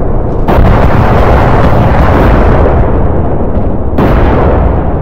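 Heavy cannons fire rapidly and loudly.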